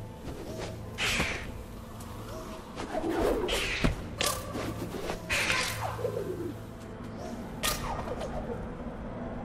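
Bright magical whooshes swell and fade several times.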